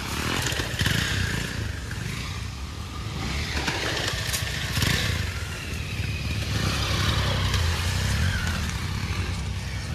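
Motorcycle tyres crunch over dry leaves and dirt.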